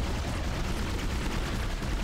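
A weapon fires with a sharp blast.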